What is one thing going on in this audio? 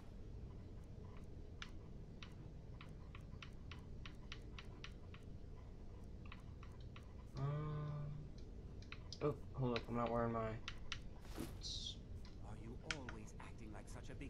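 Soft clicks tick quickly as a game menu scrolls.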